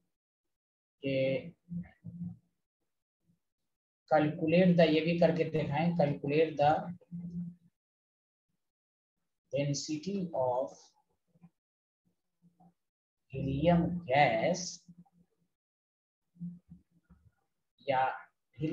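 A man speaks calmly through a microphone, in short phrases with pauses.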